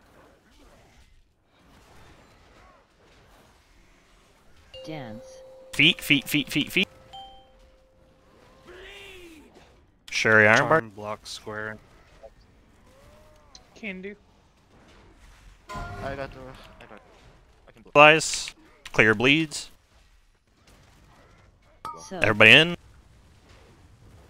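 Magic spells whoosh and burst in a game battle.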